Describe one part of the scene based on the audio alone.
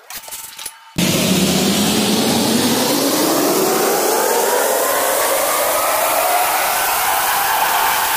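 A floor grinding machine whirs loudly, its motor pitch slowly rising.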